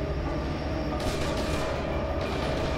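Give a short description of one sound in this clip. A rifle fires a loud shot that rings out.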